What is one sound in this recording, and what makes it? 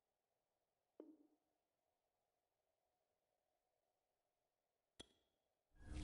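A short electronic blip sounds as a menu option is chosen.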